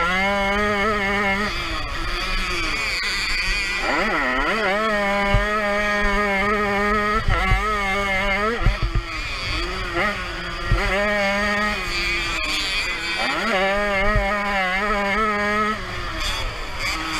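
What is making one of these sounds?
A dirt bike engine revs loudly up close, rising and falling as it shifts gears.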